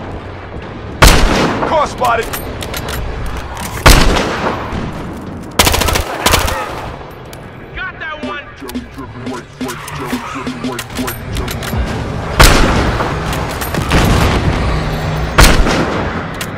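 Sniper rifle shots crack loudly and echo.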